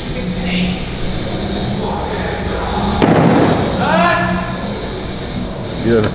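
An axe thuds into a wooden target.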